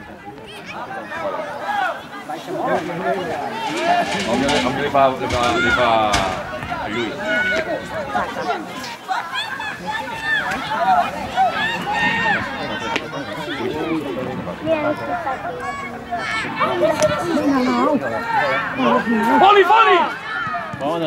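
Children shout on an outdoor football pitch.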